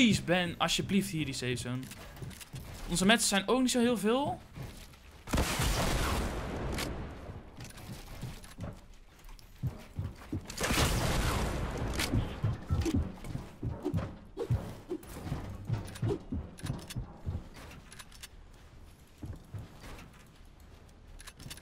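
Building pieces snap into place with rapid knocks and clicks.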